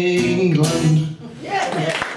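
A man sings a final long note into a microphone.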